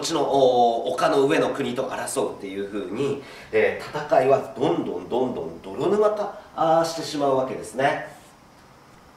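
A man lectures with animation, close by in a room.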